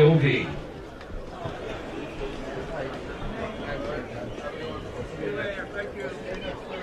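A crowd murmurs at an outdoor ballgame.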